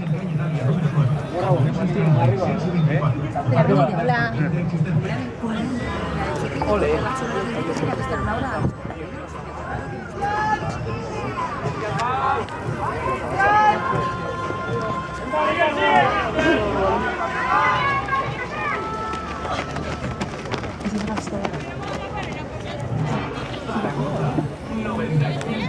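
Men and women talk nearby in a crowd of spectators.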